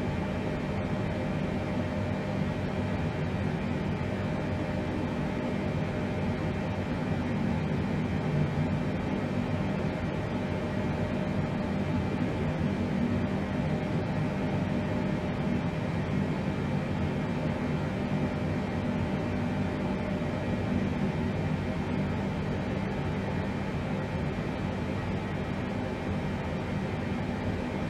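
Aircraft engines drone steadily, heard from inside the cockpit.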